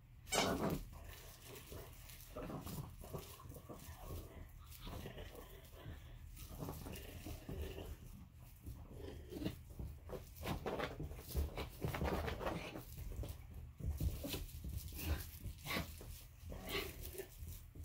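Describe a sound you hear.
A young woman talks playfully to a dog close by.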